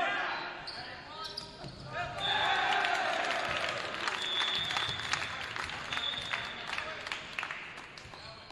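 A volleyball thuds off hands during a rally.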